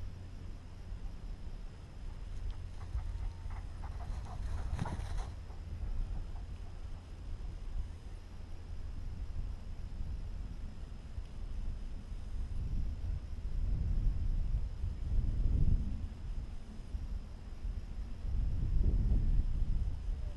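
Long grass rustles and brushes close by.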